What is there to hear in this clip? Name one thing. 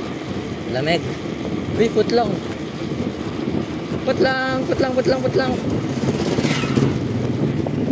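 Bicycle tyres roll on a paved road.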